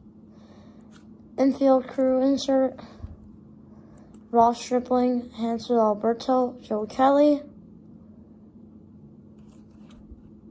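Stiff cards rustle and slide as they are flipped through by hand.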